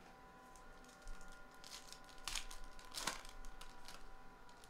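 Foil card wrappers crinkle and tear.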